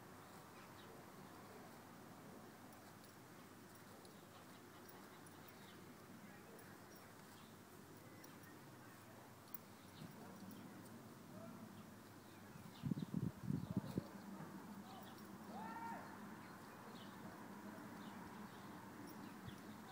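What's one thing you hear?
A horse tears and munches grass close by.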